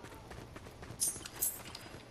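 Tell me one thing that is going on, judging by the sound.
Short bright chimes sound as crops are picked up.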